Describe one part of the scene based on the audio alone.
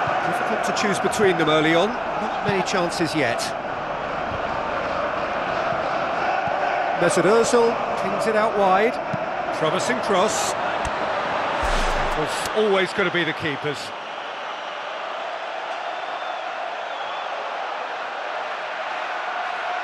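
A stadium crowd cheers and murmurs steadily.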